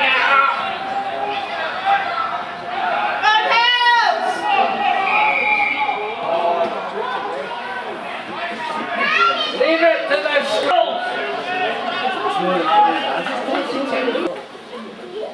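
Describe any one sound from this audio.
Players shout and call out loudly on an open field.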